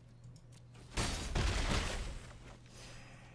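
A game sound effect whooshes loudly during an attack.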